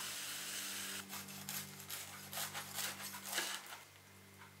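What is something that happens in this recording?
A knife crunches through crisp toasted bread.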